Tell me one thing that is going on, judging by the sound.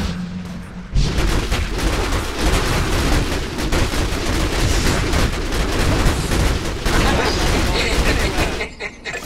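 Swords clash and spells burst in a fierce, busy fight.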